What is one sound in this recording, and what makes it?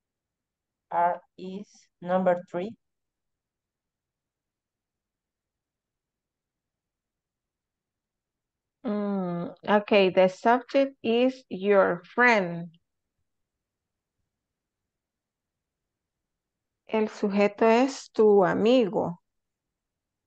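A woman speaks calmly through an online call, in short bursts.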